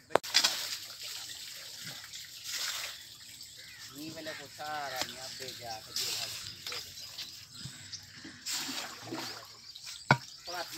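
A hoe chops and scrapes into wet mud.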